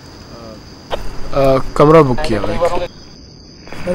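A young man speaks firmly up close.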